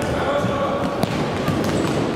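A futsal ball is kicked in a large echoing hall.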